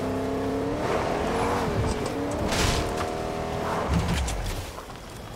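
A truck engine hums and revs.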